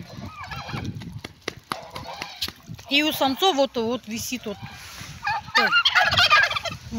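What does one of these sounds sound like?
Turkeys gobble loudly close by.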